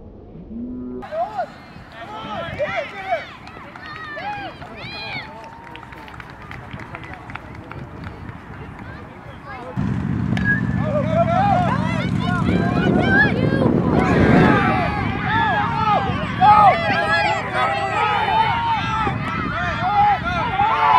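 A crowd of spectators cheers and shouts outdoors, growing louder.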